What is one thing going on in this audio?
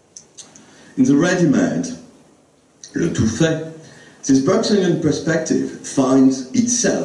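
An elderly man speaks calmly into a microphone, heard through a loudspeaker.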